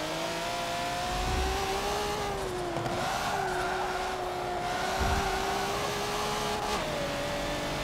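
A racing car engine revs high and steady, its pitch dipping through a corner.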